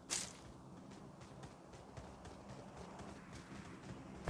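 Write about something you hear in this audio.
Footsteps patter on a hard surface.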